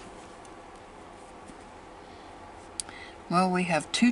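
A card is laid down on a soft cloth with a light tap.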